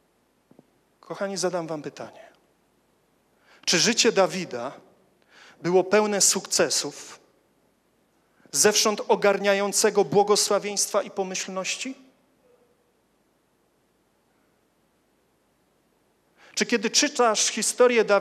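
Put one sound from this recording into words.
A young man speaks calmly into a microphone, in short phrases with pauses.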